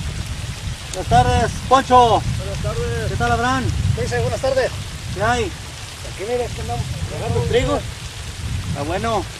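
A man speaks calmly outdoors.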